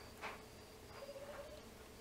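Short electronic blips sound in quick succession.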